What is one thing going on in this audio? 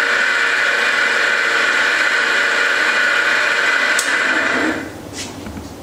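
A machine whirs loudly and steadily, then stops.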